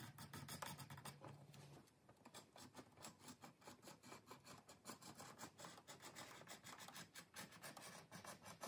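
A utility knife cuts through thick leather with short rasping strokes.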